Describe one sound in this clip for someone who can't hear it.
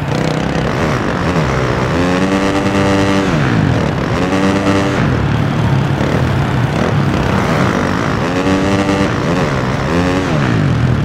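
A dirt bike engine revs up and down loudly, rising and falling in pitch.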